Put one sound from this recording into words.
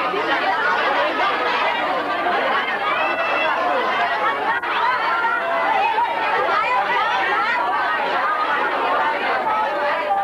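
A crowd of young people chatters and calls out all around, close by.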